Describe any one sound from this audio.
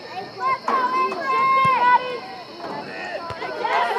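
A foot kicks a soccer ball with a thump.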